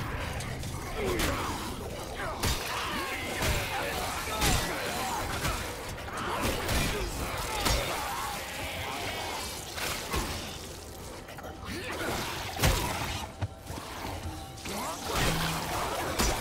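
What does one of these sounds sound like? Creatures snarl and shriek close by.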